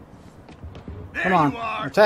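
A man calls out roughly.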